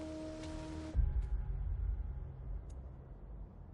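A bolt of lightning strikes with a deep crash of thunder.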